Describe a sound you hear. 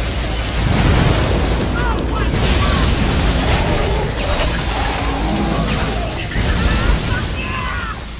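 Explosions and sword slashes crash and burst loudly.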